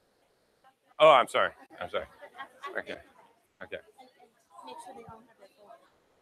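A crowd of people chatter and murmur.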